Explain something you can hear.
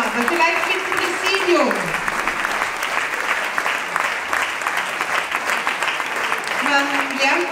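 A crowd applauds in a large hall.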